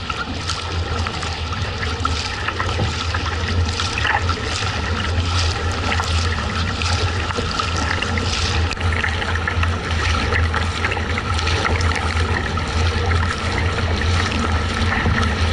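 A paddle splashes rhythmically into water.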